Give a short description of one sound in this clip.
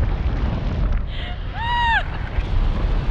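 A young woman squeals and laughs with delight close by.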